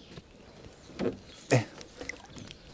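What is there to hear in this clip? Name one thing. A wooden pole knocks and splashes in water.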